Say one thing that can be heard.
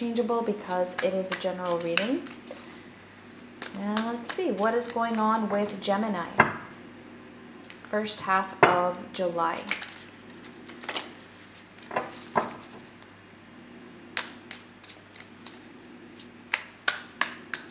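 A deck of cards is shuffled and tapped with soft, crisp clicks.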